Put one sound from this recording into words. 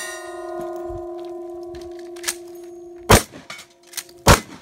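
A shotgun's action is racked.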